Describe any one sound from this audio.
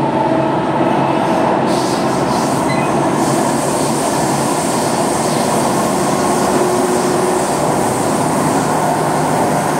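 A train rumbles and roars steadily along the track.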